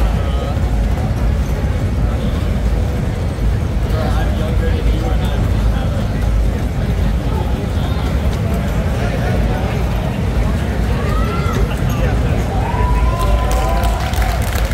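Loud electronic dance music plays through loudspeakers.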